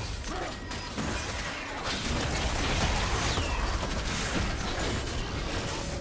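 Magic blasts and weapon hits crackle and whoosh in a busy fight.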